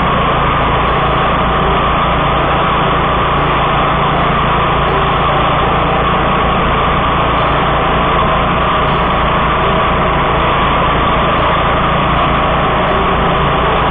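A mower engine roars steadily up close.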